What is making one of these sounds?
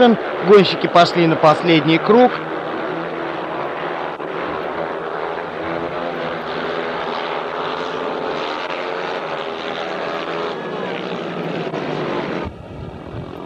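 Motorcycle engines roar loudly.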